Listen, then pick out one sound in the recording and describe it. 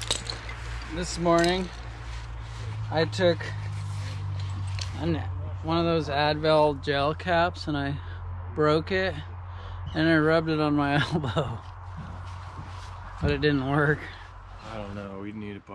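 An adult man talks close to the microphone.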